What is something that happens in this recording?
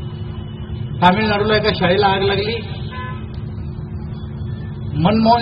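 A middle-aged man speaks firmly into a microphone nearby.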